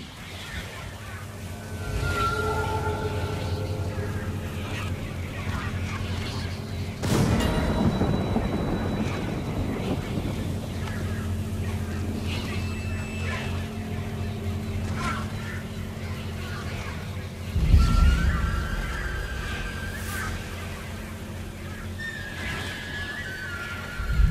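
Wind gusts steadily outdoors.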